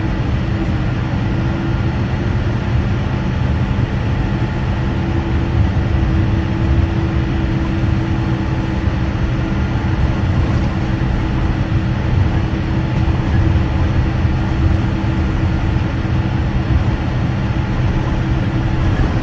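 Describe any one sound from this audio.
An aircraft engine drones steadily as the plane taxis.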